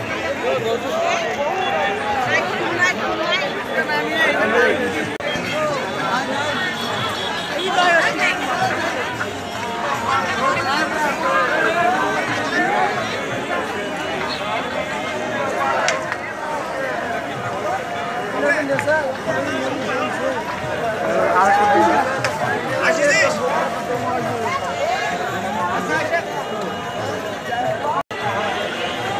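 A large crowd chatters outdoors with many voices at once.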